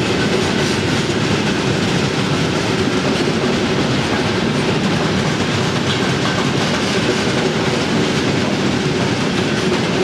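A long freight train rumbles past on the tracks, its wheels clattering and screeching.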